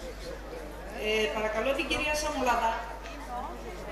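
A woman speaks over a loudspeaker in an echoing hall.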